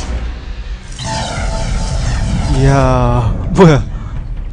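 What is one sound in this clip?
Magic fire bursts with a roaring crackle.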